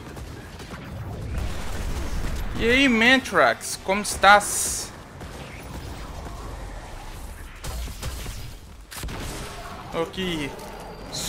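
Gunfire and blasts from a video game crackle.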